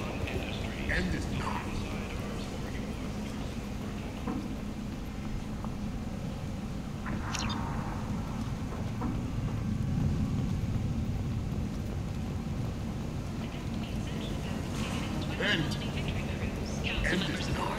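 Footsteps hurry across a hard metal floor.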